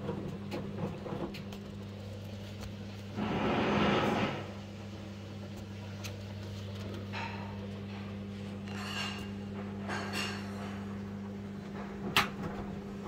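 A front-loading washing machine hums as its drum turns.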